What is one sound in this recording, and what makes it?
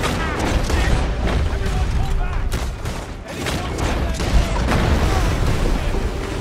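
Gunshots crack in quick succession.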